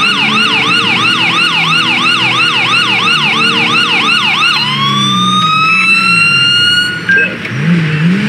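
A police siren wails rapidly, then winds down and stops.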